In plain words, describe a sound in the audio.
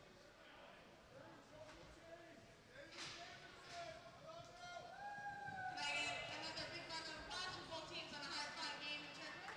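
Young men shout and talk loudly across an echoing ice rink.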